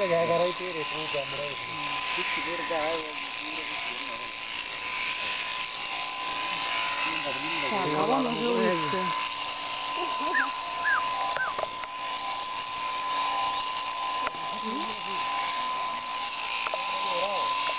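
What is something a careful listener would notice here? Electric shears buzz steadily.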